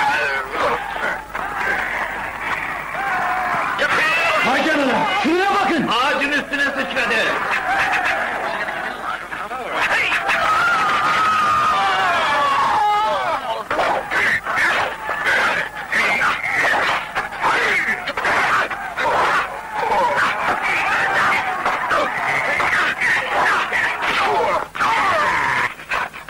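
A crowd of men shouts and cheers excitedly.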